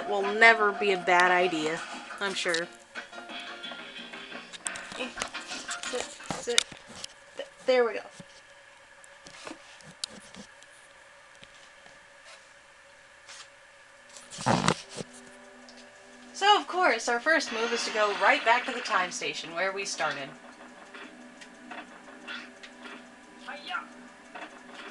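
Electronic game music and sound effects play from a television loudspeaker.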